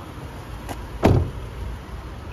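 A minivan's front door slams shut.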